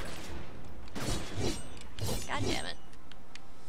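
A blade swishes in a sharp strike.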